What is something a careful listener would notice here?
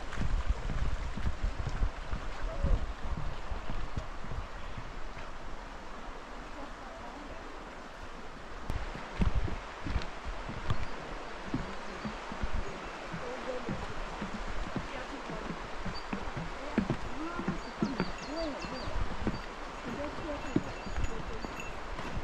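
Footsteps thud on wooden planks and steps.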